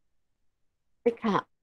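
A young woman speaks briefly through an online call.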